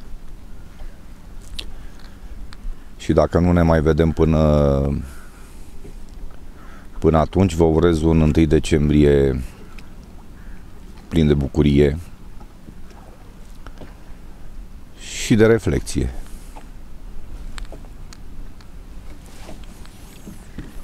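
Wind blows softly across open water.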